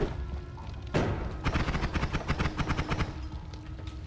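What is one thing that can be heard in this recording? A magic beam zaps and crackles.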